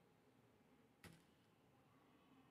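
Dry seeds rattle softly in a metal tin.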